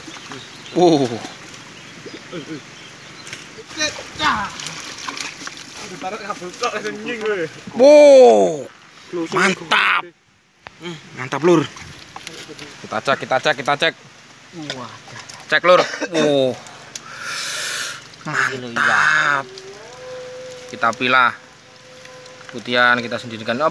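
Water sloshes and splashes in a bucket.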